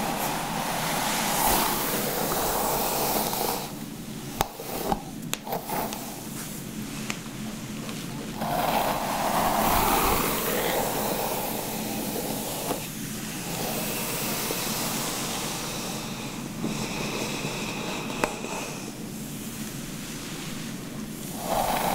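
A bristle brush sweeps through long hair up close with a soft rustle.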